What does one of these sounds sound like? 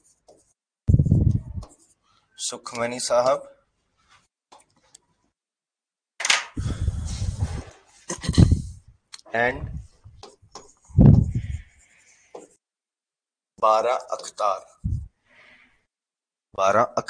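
A man speaks calmly and explains, close to a microphone.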